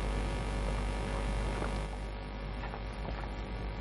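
A glass is set down on a table with a knock.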